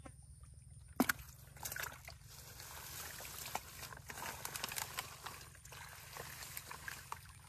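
Hands squelch and rustle through wet mud and dry grass.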